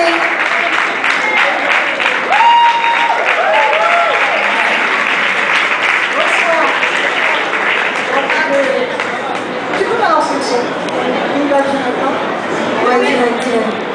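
A young woman sings through a microphone, heard over loudspeakers.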